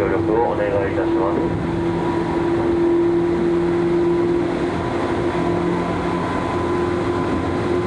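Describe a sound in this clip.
A train's motor hums with a steady drone.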